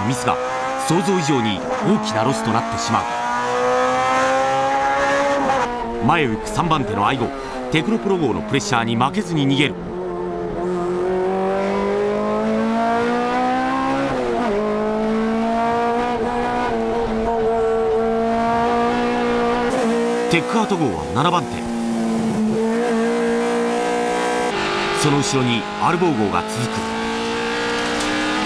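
A racing car engine roars loudly from inside the cabin, revving up and down.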